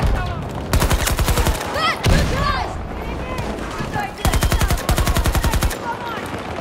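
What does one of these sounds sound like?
A rifle fires rapid bursts of shots.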